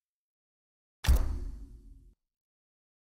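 A menu chime sounds.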